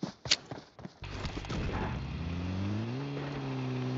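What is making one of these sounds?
A vehicle engine starts and revs up, rising in pitch.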